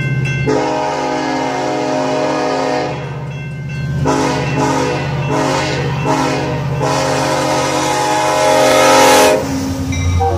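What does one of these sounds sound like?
A locomotive horn blows loud, long blasts.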